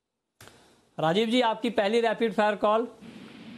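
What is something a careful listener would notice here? A man speaks briskly into a microphone.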